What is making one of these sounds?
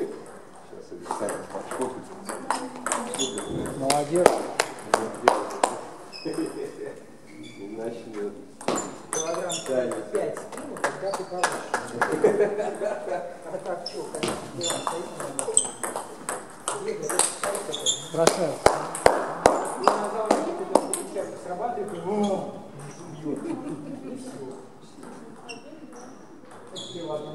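A table tennis ball clicks back and forth on paddles and the table in a quick rally.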